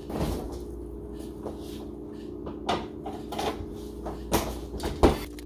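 Dishes and objects clatter and knock nearby.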